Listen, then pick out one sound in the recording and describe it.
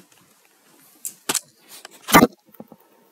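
Something is knocked and bumped close by.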